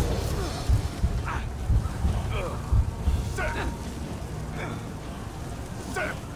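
Fire crackles close by.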